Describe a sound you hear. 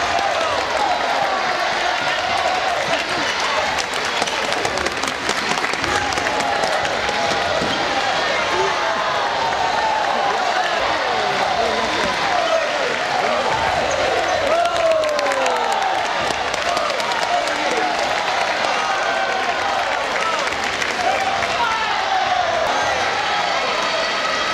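Many young voices chatter and call out in a large echoing hall.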